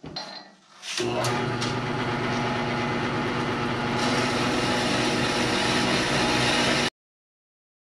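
An electric band saw motor hums steadily with a whirring blade.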